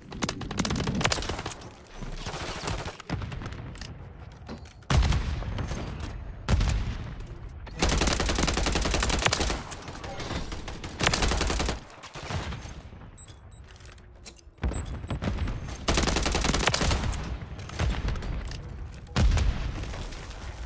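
Gunfire rattles in loud, sudden bursts.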